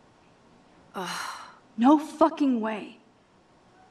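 A young woman exclaims loudly in shock.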